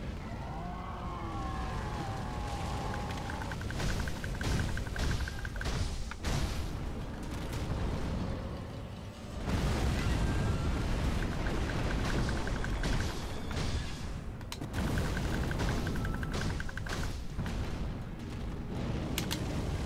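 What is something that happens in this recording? Flames roar and crackle loudly.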